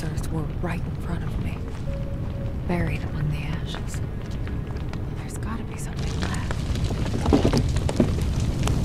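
Footsteps scuff slowly on a hard floor.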